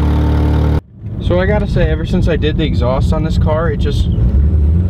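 A car engine hums from inside while driving.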